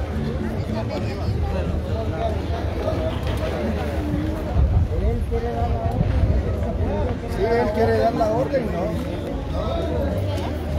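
A crowd of men and women talk over one another outdoors, close by.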